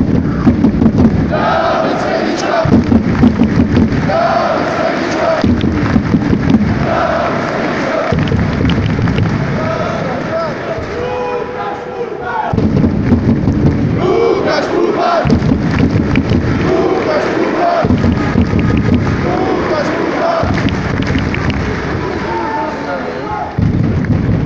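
A large crowd chants and sings loudly in a big echoing arena.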